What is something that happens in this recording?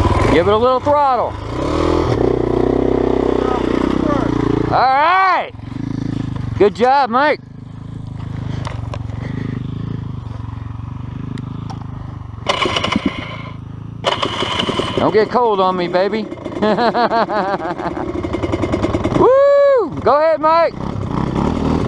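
A dirt bike engine revs sharply in short bursts.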